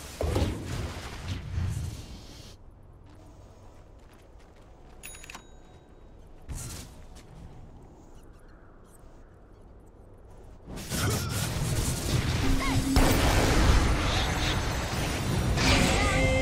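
Magic blasts and weapon blows clash in a hectic fight.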